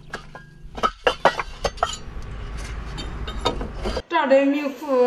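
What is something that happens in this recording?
Bricks clack and knock as they are stacked.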